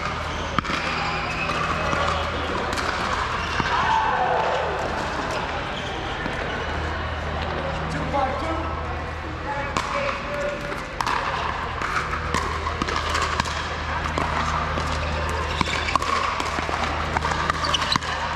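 Paddles knock a plastic ball back and forth with sharp pops, echoing in a large hall.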